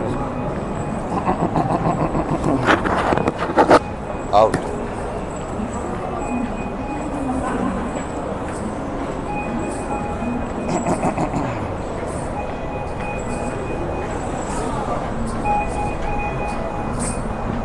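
A man talks close to a phone microphone.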